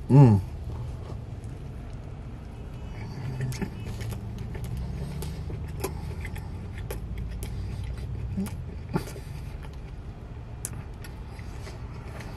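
A man chews noisily close by, with wet smacking sounds.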